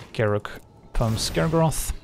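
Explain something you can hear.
A magical burst whooshes loudly.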